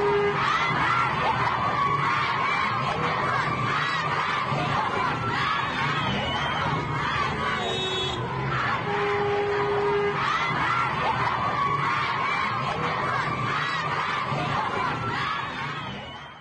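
A crowd of young people shouts and chants outdoors.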